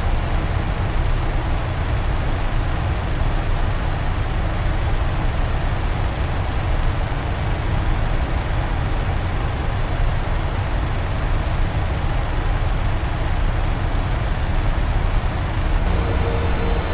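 Jet engines roar steadily, heard from inside a cockpit.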